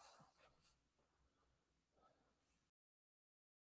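Paper rustles softly under a woman's hands.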